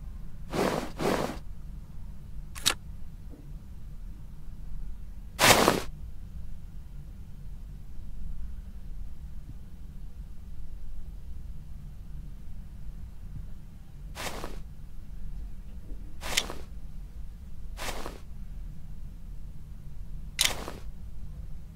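Short swooshing clicks sound now and then as small parts snap into place.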